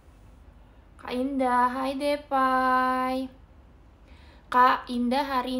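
A young woman talks close by, with animation, in a high, sing-song voice.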